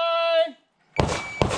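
A shot timer beeps sharply.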